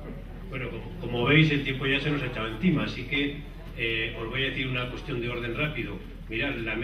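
A man speaks through a microphone with a room's echo.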